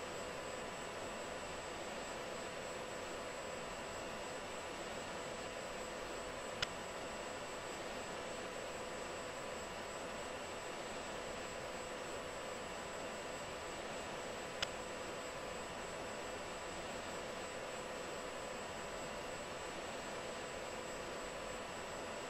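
A jet engine roars steadily from inside a cockpit.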